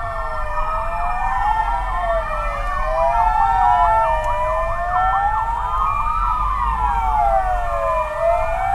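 Police sirens wail loudly and close by, rising and falling.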